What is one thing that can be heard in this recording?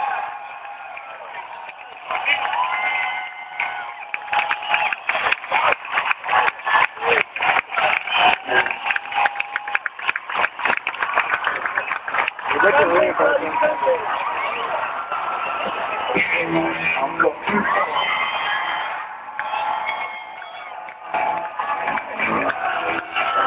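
A large crowd cheers and sings along loudly.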